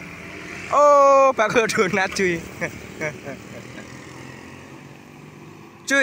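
Motorbikes ride past with engines humming.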